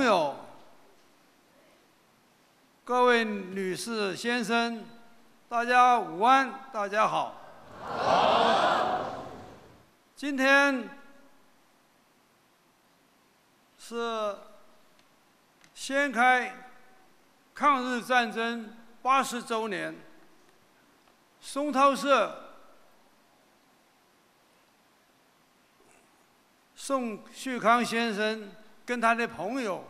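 An elderly man speaks slowly and formally through a microphone in a large echoing hall.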